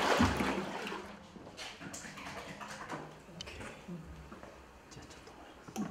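Water trickles from a tap into a bucket.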